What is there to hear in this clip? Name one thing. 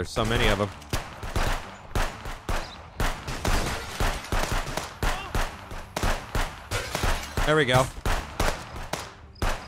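A rifle fires rapid, repeated shots.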